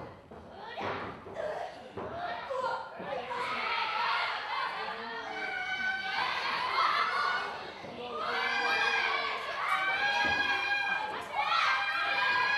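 Young women wrestlers shout and yell in a wrestling ring.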